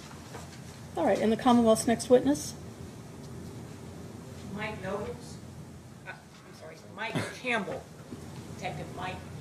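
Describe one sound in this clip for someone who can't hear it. A middle-aged woman speaks calmly through a microphone.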